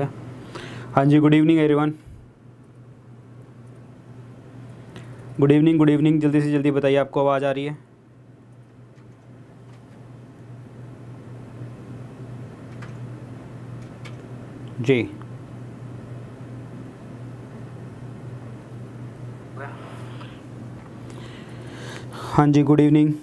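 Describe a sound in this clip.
A man speaks briefly in short bursts, close to a microphone.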